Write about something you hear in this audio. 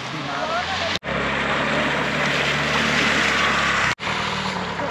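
Water splashes and sprays under a scooter's wheels.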